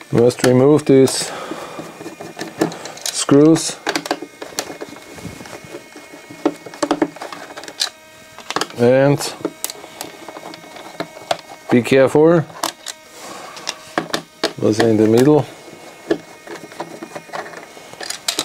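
A screwdriver turns small screws with faint creaks and clicks.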